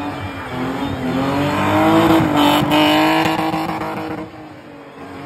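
Tyres screech on tarmac.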